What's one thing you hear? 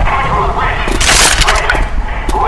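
A shotgun fires a loud blast.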